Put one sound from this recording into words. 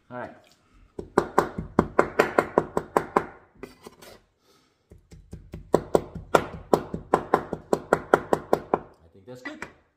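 A cleaver chops rapidly on a wooden board.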